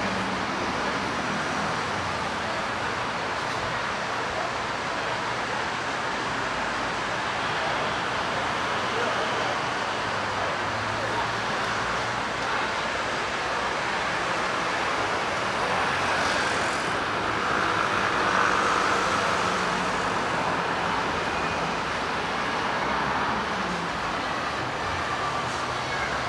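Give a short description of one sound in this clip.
Many voices murmur in a busy crowd nearby.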